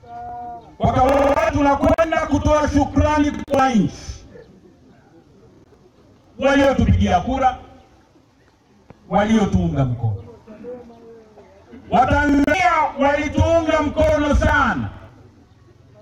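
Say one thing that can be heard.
A man speaks loudly and forcefully through a microphone and loudspeaker outdoors, in bursts with pauses.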